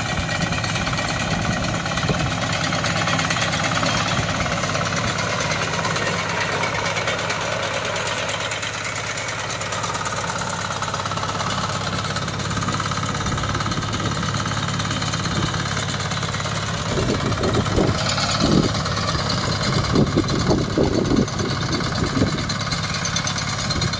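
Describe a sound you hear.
A small engine runs steadily close by.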